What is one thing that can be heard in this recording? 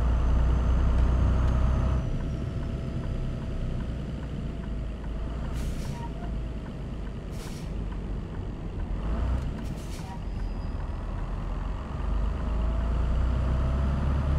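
A truck engine rumbles steadily, heard from inside the cab.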